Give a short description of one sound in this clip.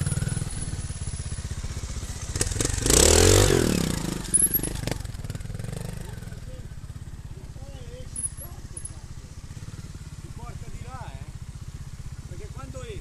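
A trial motorcycle engine idles with a steady low putter close by.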